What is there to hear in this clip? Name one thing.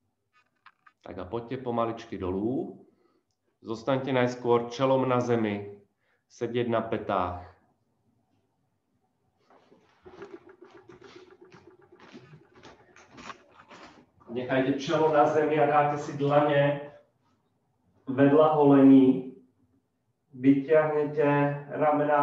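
A man speaks calmly and close to a microphone, pausing between phrases.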